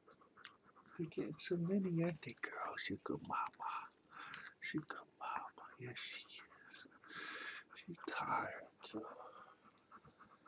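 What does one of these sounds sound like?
Newborn puppies squeak and whimper up close.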